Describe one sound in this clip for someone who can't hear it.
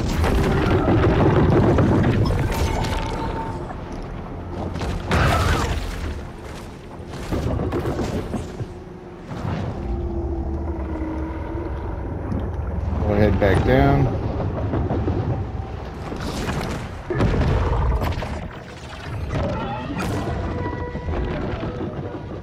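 Water rumbles and swirls with a low, muffled roar.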